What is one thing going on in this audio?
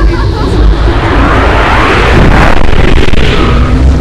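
A magical shimmering chime sounds as a figure vanishes in sparkles.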